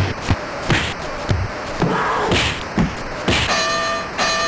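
Punches thud against a boxer's body in quick succession.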